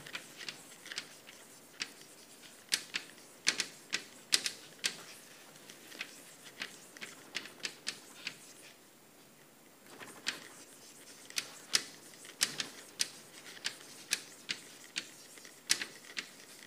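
Chalk taps and scrapes sharply on a blackboard.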